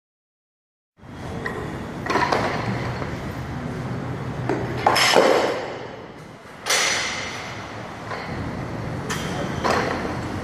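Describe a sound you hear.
Weight plates on a barbell clank.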